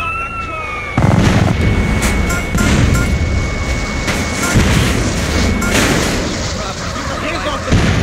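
Loud explosions boom and roar with fire.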